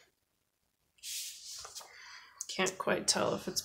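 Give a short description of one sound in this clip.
Paper rustles as it slides across a table.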